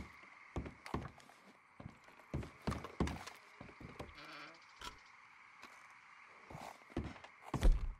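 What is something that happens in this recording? Dishes and pots clatter as a cabinet is rummaged through.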